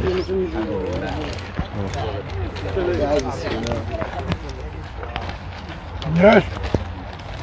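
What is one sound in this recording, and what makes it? A man speaks with animation close by, outdoors.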